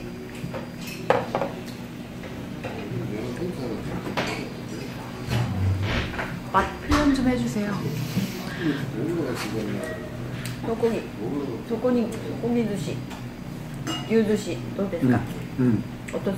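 Chopsticks and dishes clink on a table.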